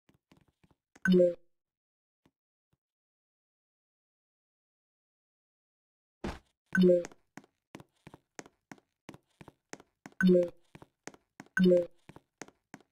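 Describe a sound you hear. A short, bouncy game jump sound plays several times.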